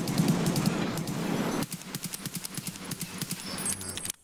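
A rifle fires a burst of rapid shots nearby.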